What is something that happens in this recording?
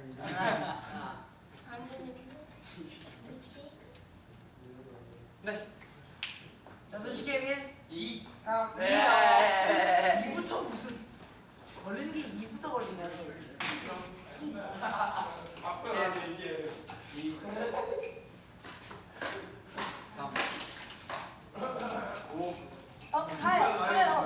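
A group of young men talk and laugh together nearby.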